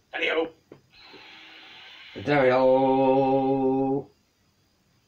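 A magical whoosh swells and rings out from a television.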